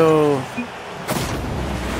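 An explosion bursts with a sharp whoosh.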